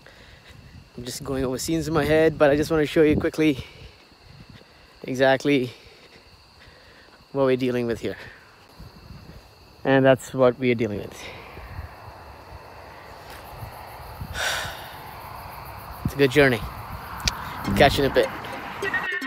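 A man talks casually and close up, in short bursts.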